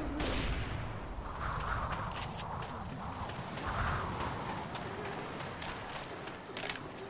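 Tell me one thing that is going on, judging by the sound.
A submachine gun fires in quick bursts.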